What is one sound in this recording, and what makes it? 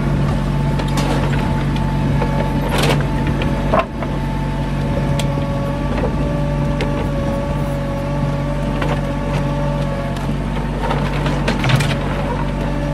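Wooden boards clatter and knock as a tractor loader pushes into a pile.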